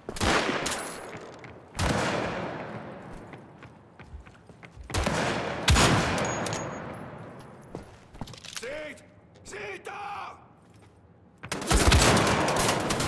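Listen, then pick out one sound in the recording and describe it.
Rifle shots crack loudly and echo.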